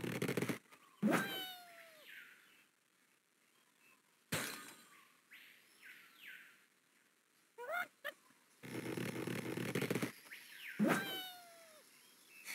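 A cartoon bird squawks as it is flung through the air.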